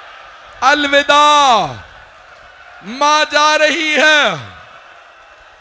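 A man chants a mournful lament through a microphone, with echo.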